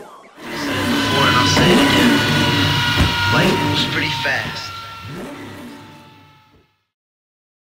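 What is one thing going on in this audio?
A spinning tyre screeches loudly and then fades away.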